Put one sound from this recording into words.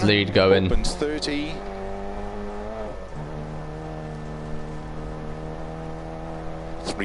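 A car engine hums steadily and revs higher.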